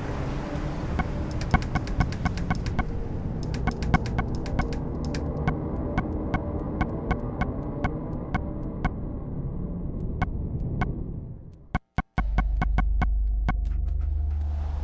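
Menu clicks tick rapidly, one after another.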